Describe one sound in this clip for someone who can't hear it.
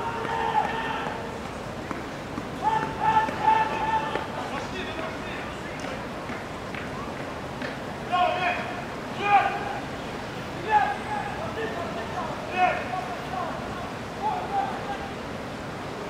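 Young men shout to each other from across an open field outdoors.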